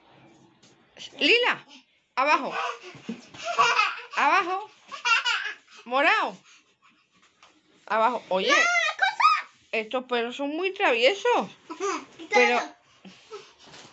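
A young girl laughs loudly nearby.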